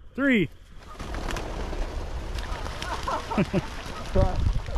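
Geese wings flap as the birds take off.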